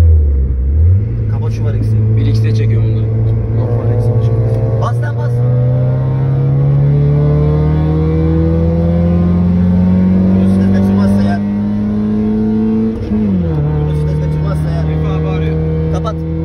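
A car engine roars loudly from inside the car, rising steadily in pitch and dropping sharply at each gear change.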